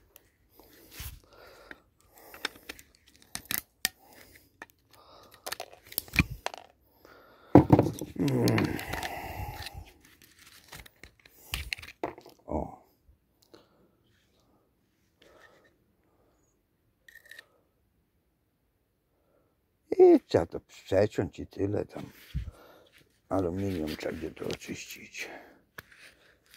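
Loose metal parts clink and rattle as they are handled.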